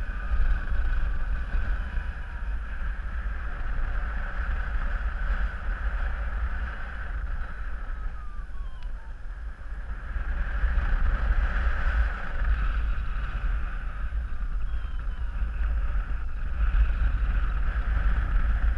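Strong wind rushes and buffets loudly against the microphone.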